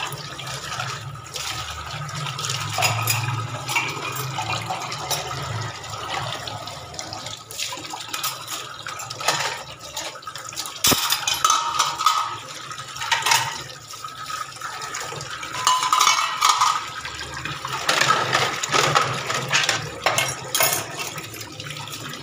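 Tap water runs and splashes onto metal dishes in a sink.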